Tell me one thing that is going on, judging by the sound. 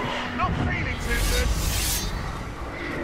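A sword swooshes through the air.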